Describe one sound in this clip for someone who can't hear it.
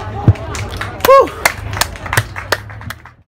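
A man claps his hands several times.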